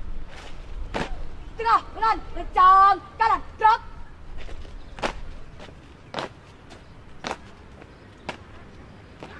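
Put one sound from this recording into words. Boots stamp sharply on pavement in unison.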